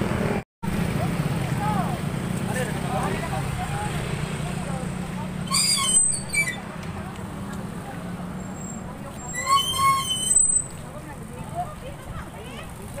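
Several women chat nearby outdoors.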